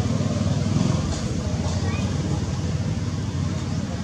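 A monkey chews a piece of crunchy fruit.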